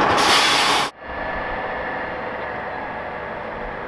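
A distant truck engine hums down a quiet street.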